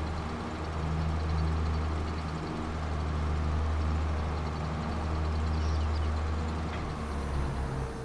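A tractor engine idles with a deep, steady rumble.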